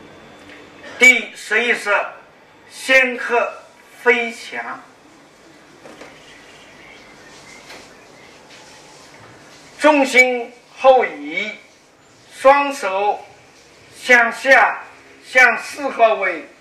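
An elderly man speaks calmly and clearly.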